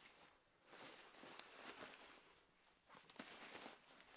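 A bag rustles.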